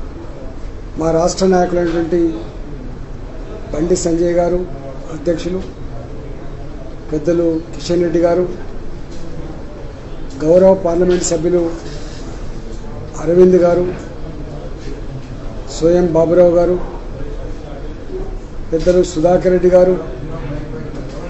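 A middle-aged man speaks calmly into a microphone in short phrases with pauses.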